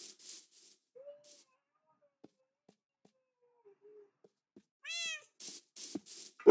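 A dog whines softly.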